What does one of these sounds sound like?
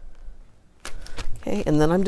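A plastic sheet crinkles under hands.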